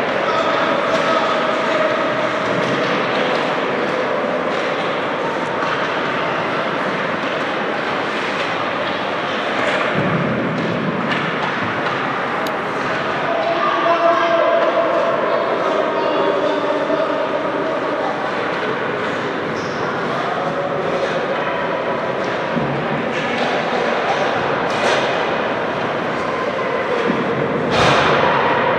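Children's voices chatter and call out across a large echoing rink.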